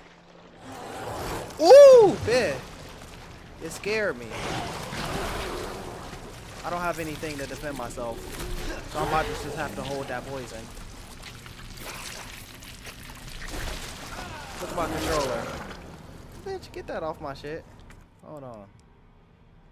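A young man talks and exclaims with animation into a close microphone.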